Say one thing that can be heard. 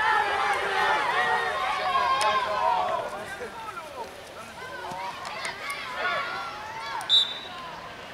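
A crowd of spectators cheers and calls out nearby.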